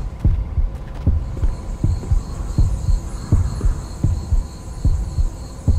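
Footsteps thud quickly and steadily as a game character runs.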